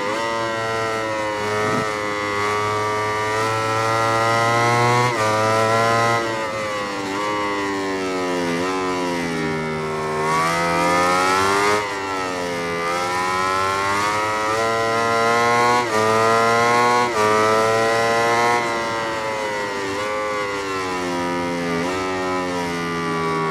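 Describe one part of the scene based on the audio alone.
A racing motorcycle engine screams, rising and falling in pitch as it speeds up and slows down.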